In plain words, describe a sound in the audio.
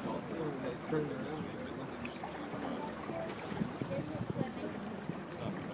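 River water splashes and laps close by.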